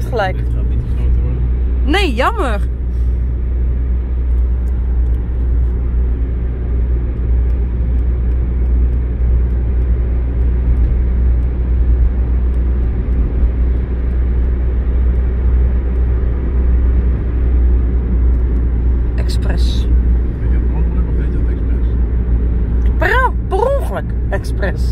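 A car engine hums and tyres rumble steadily on the road, heard from inside the car.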